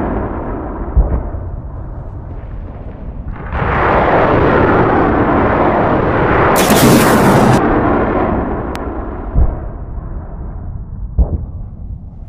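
Explosions boom in short, sharp blasts.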